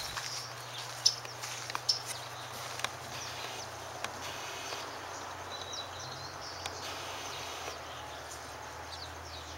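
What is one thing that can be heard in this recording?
Small birds chirp and twitter in the trees nearby.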